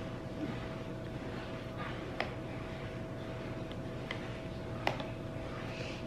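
A spoon clinks against a glass while stirring.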